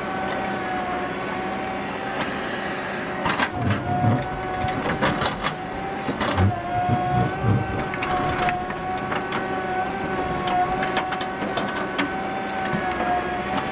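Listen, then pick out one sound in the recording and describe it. Dirt and stones pour from a bucket and thud onto a heap.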